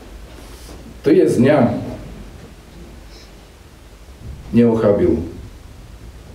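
A man chants in a deep voice in two short phrases.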